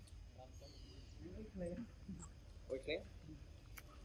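A young monkey chews food.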